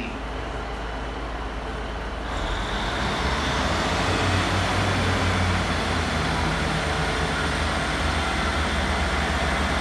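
A diesel train engine rumbles and hums close by.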